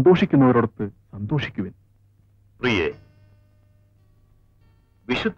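A man speaks loudly and with emphasis, in short bursts.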